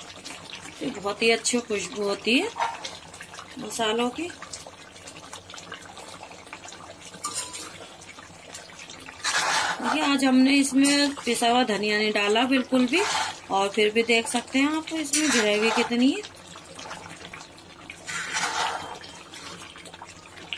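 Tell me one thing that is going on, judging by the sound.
A metal spoon stirs thick curry in a wok.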